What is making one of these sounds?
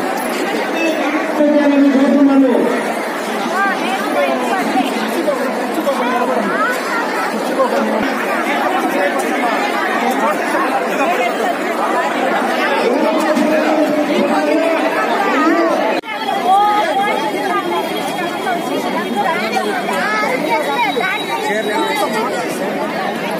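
A large crowd chatters loudly all around.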